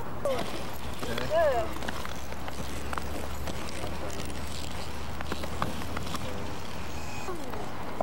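Inline skate wheels roll on pavement.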